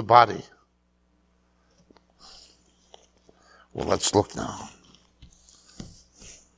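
A middle-aged man speaks calmly into a clip-on microphone.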